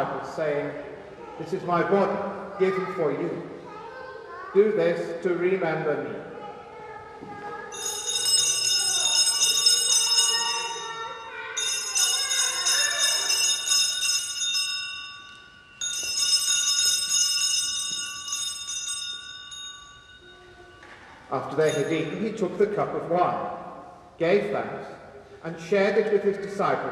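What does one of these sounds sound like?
An older man speaks slowly at a distance in a large echoing hall.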